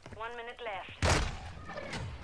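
A gun fires a sharp shot.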